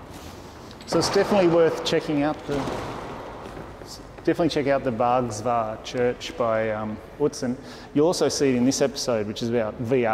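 A man speaks calmly and clearly, close by, in a large echoing room.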